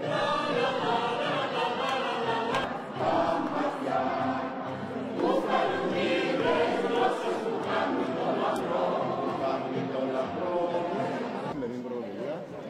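A choir sings together in a large echoing hall.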